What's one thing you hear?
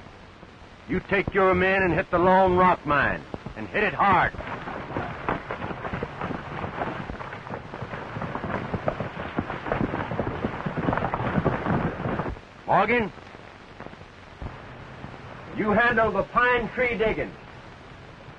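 Men shout loudly outdoors.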